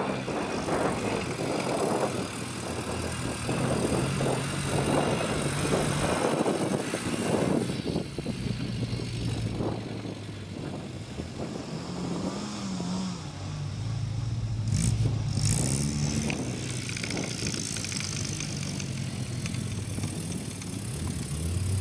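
A small car engine revs and labours as the car climbs a grassy slope.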